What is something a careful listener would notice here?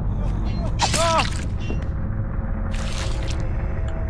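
A heavy blow lands with a sharp thud.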